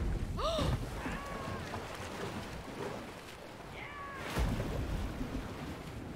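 A boat crashes and breaks apart with a loud thud.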